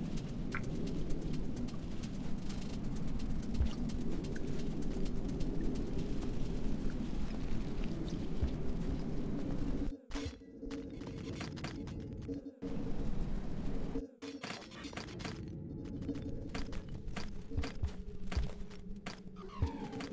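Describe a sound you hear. Soft clicks and thuds sound now and then.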